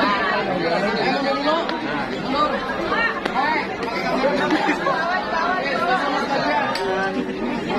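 Young women squeal and laugh.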